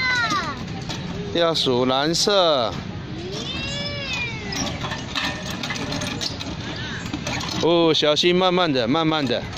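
Metal playground pieces creak and clank as they spin.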